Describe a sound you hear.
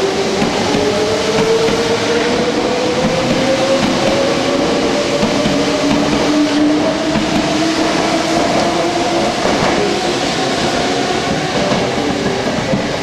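An electric train pulls away, its motor whining and slowly rising in pitch.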